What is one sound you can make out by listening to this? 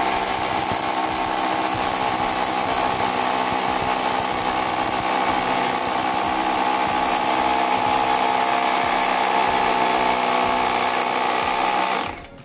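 A hammer drill grinds loudly into concrete, with a steady whirring hum.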